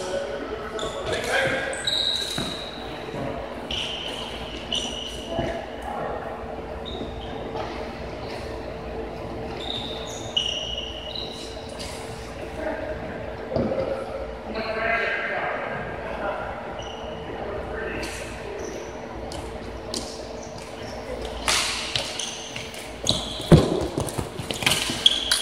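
Plastic sticks clack against a ball and the floor.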